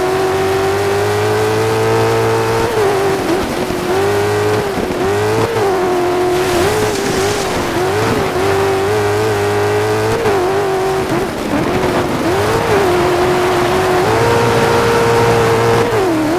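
A racing engine whines loudly, rising and dropping in pitch as it shifts gears.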